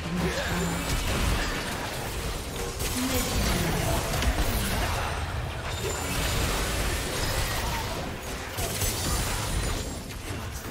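Game spell effects crackle and burst in a fast, busy fight.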